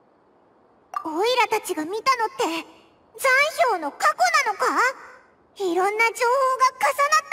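A girl speaks with high-pitched animation.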